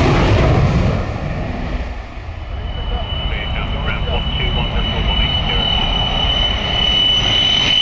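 A jet aircraft roars loudly overhead.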